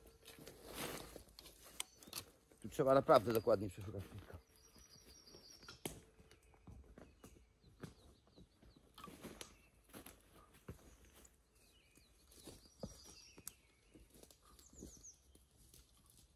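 Footsteps crunch through dry leaves close by.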